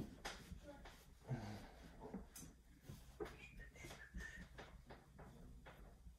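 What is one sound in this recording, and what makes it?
An eraser rubs across a whiteboard.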